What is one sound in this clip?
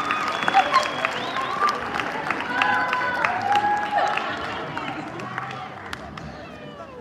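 An audience cheers and chatters loudly in a large hall.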